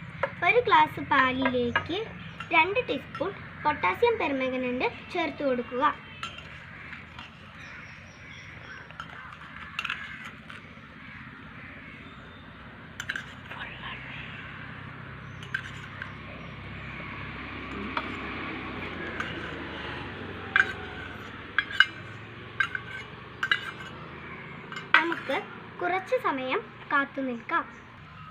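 A young girl speaks close by, explaining calmly.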